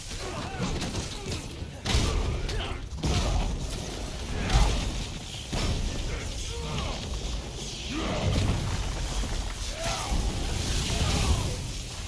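Punches and blows thud in quick bursts.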